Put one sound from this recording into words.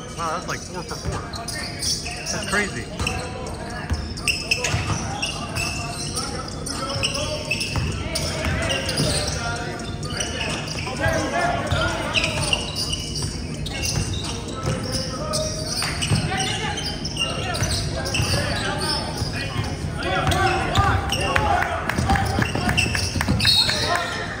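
Spectators talk and call out nearby.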